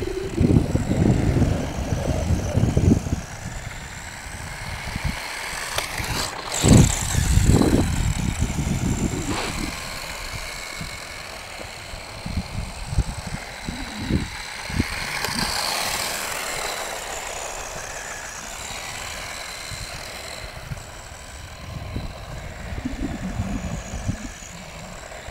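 Wind buffets and rumbles across the microphone outdoors.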